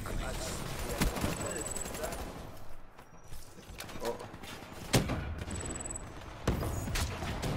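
Gunshots bang in sharp single cracks.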